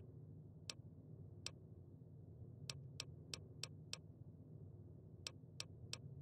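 Short, sharp menu clicks tick now and then.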